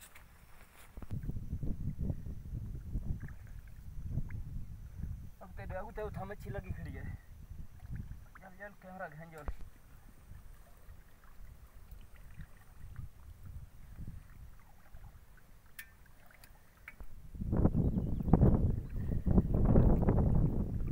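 Water sloshes and splashes as a man wades.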